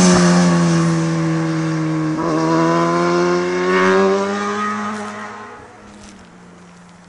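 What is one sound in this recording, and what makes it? A motorcycle engine roars nearby, its pitch rising as it approaches and then fading away.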